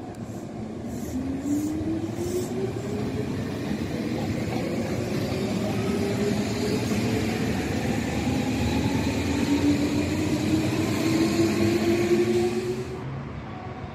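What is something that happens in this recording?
An electric train pulls away with a rising motor whine.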